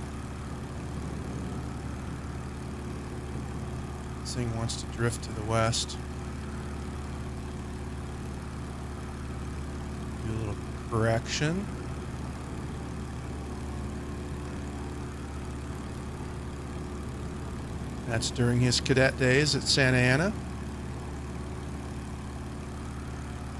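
A light aircraft engine drones steadily.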